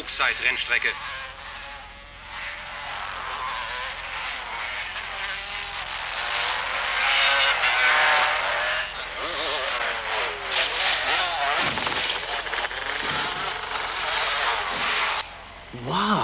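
Motorcycle engines roar and whine.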